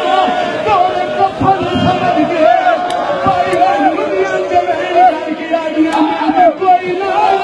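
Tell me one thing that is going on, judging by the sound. A man chants loudly into a microphone.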